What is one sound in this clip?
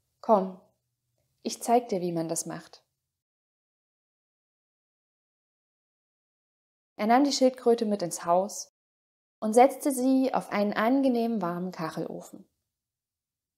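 A young woman speaks calmly and close to a microphone, with long pauses.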